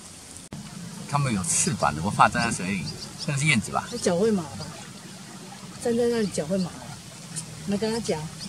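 Swallows twitter and chirp in quick bursts.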